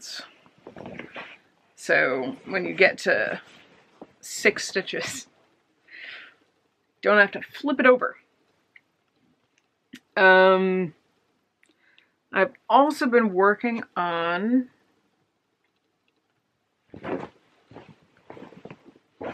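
A young woman talks close to a microphone, in a casual, animated way.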